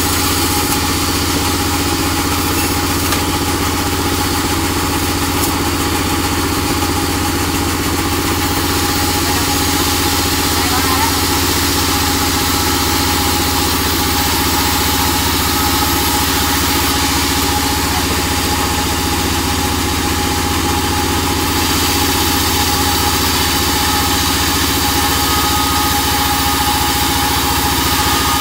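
A band saw whines steadily, cutting through timber.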